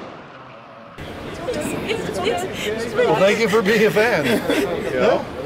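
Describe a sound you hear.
A young woman speaks excitedly up close.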